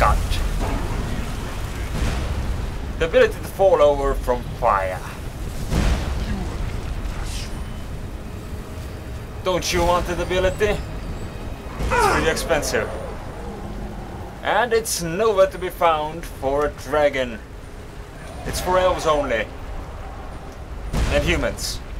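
Flames roar and whoosh in bursts.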